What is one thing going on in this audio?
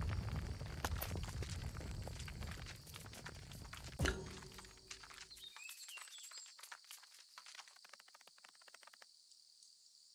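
Small insect feet patter and scratch over loose gravel.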